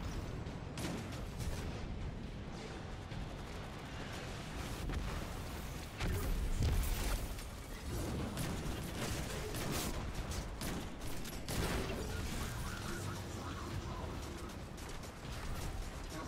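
Gunfire cracks and booms in rapid bursts.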